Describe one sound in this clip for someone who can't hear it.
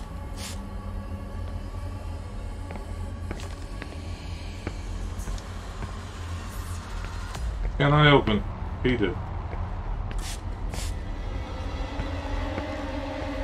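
Footsteps shuffle slowly along a hard floor.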